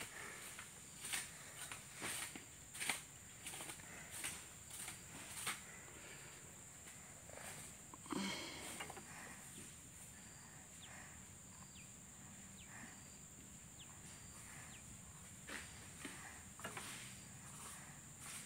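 Dry palm fronds rustle and scrape as a buffalo drags a load.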